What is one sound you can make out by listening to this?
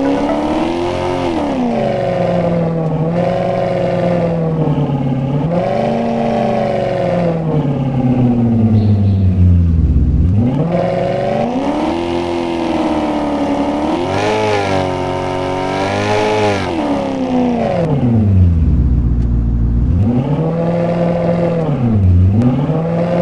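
A car engine revs up and down again and again.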